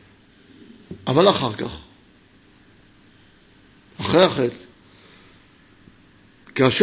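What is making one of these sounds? A man speaks calmly into a microphone in short bursts.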